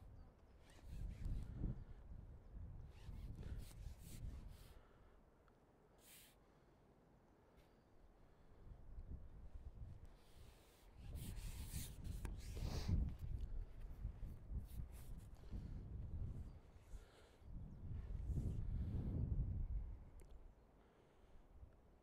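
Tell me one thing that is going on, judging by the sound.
Wind buffets outdoors in gusts.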